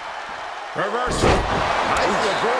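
A wrestler slams onto the ring mat with a heavy thud.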